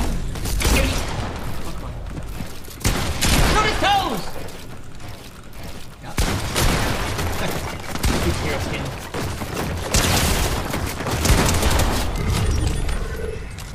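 Building pieces clatter into place in a game.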